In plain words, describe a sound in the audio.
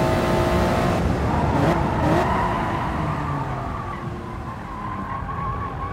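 A racing car engine crackles and pops as the car brakes and shifts down.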